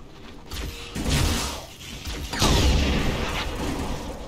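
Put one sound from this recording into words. Energy blasts whoosh and crackle loudly in bursts.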